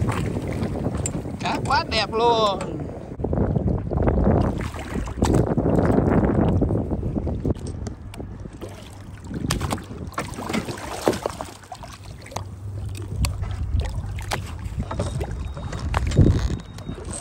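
Water splashes and churns as a large fish thrashes at the surface.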